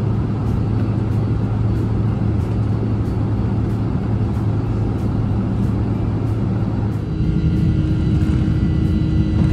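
A jet engine roars loudly and grows stronger.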